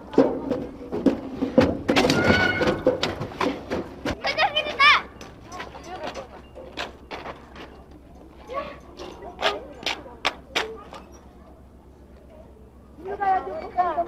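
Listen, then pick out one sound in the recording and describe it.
Young children chatter and shout excitedly close by.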